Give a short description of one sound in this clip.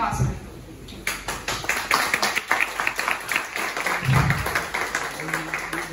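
An audience claps their hands.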